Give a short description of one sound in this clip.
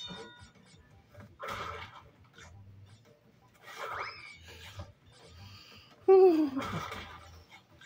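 A handheld game plays bright, cartoonish sound effects through a small speaker.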